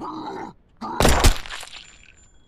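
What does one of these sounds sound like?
A single loud gunshot rings out.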